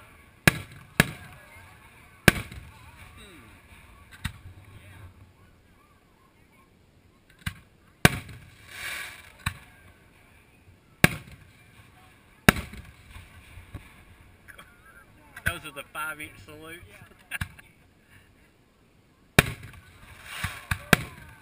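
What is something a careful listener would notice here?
Fireworks crackle and sizzle after bursting.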